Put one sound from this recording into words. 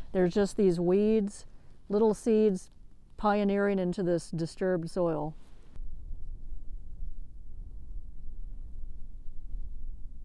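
Fingers dig into loose soil.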